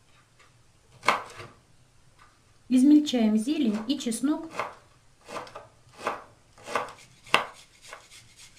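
A knife chops on a wooden cutting board.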